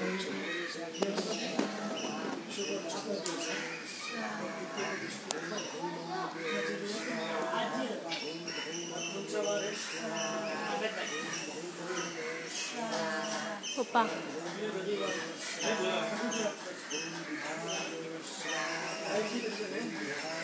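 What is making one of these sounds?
A man chants a prayer steadily nearby.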